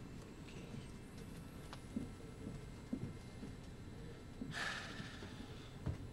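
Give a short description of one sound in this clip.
A young man speaks quietly and close by.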